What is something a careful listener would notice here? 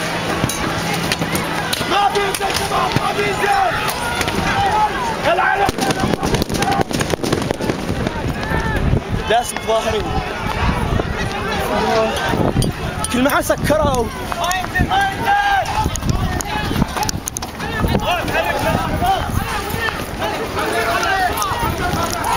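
A crowd of young men shouts and yells outdoors.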